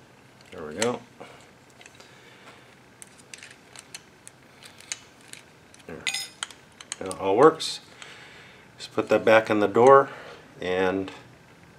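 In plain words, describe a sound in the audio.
Small metal parts of a door knob click and rattle as they are handled.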